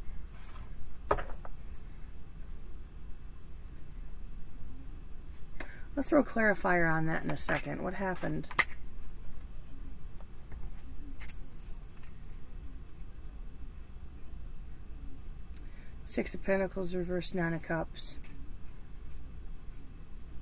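Playing cards are shuffled and laid down on a table.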